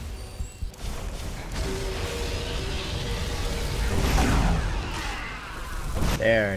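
A fire spell roars and crackles.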